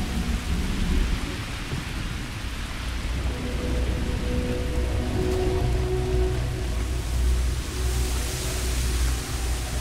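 Footsteps crunch slowly over leaves and dirt.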